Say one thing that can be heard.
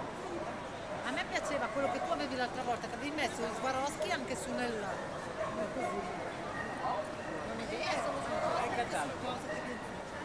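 Adults talk nearby with animation.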